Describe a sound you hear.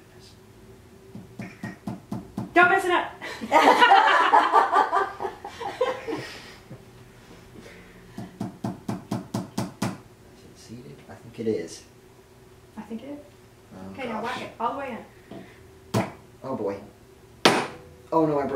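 A cobbler's hammer taps on leather.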